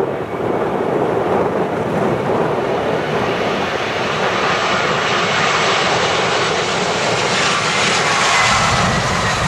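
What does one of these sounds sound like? A jet airliner's engines whine and roar as it comes in to land.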